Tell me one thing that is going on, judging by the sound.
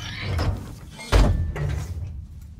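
A heavy metal valve wheel clanks as it turns.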